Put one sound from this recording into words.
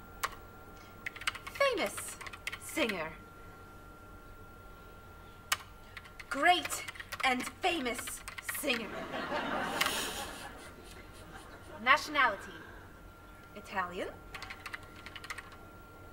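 Computer keys clatter under quick typing.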